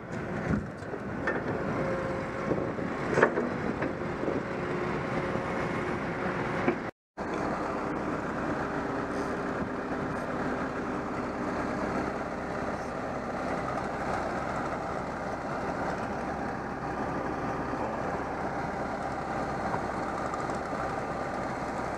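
A diesel tracked carrier's engine drones as it drives over sand.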